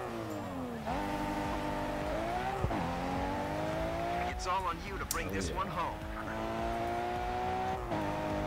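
A car engine revs hard and climbs through gear changes.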